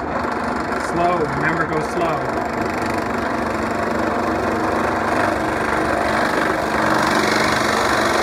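A drill bit bores into wood.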